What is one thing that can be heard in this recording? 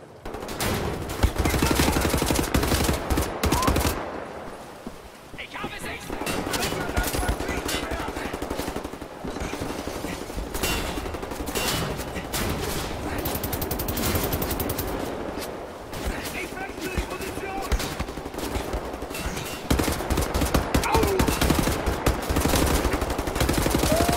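Rapid rifle fire crackles in loud bursts.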